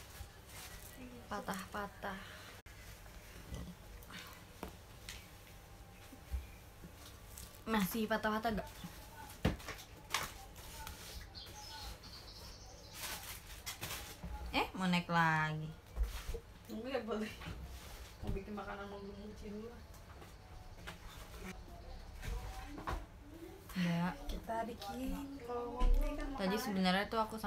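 A young woman speaks softly and casually, close by.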